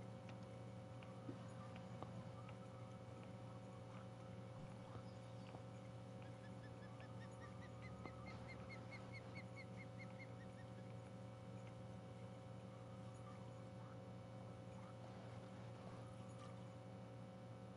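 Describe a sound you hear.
A fishing reel whirs steadily as line is wound in.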